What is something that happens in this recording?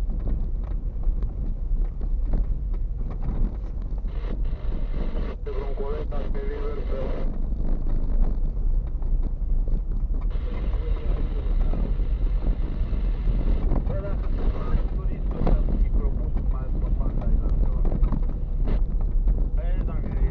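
A car engine rumbles steadily from inside the cabin.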